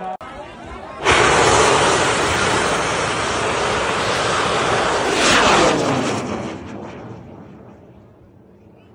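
A rocket roars loudly as it launches and fades into the sky.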